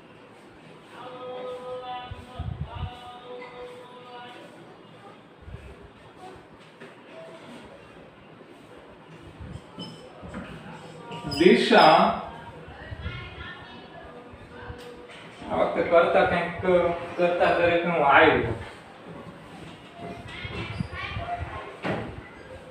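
A young man speaks calmly nearby, as if teaching.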